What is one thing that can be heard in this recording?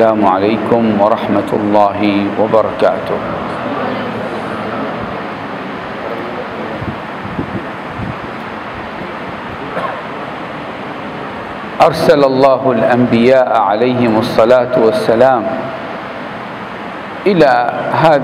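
An older man speaks calmly into a microphone, heard through a loudspeaker in a reverberant room.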